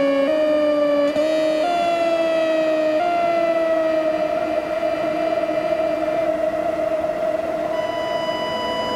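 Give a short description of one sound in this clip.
A melodica plays slow, sustained notes that glide and bend.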